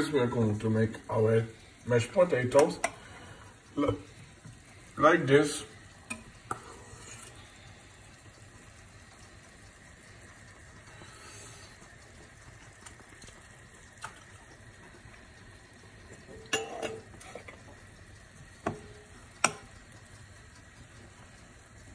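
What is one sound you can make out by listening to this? A fork taps and scrapes against a frying pan.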